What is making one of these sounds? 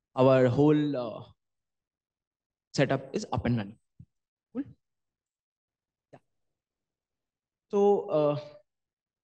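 A man speaks through a microphone in short, calm phrases with pauses.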